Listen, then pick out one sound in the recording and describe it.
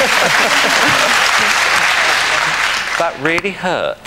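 An audience cheers and applauds loudly.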